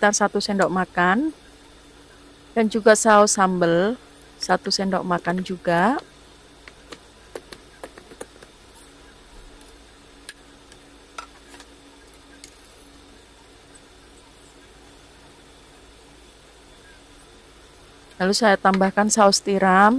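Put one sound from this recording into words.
Soup bubbles and simmers in a pan.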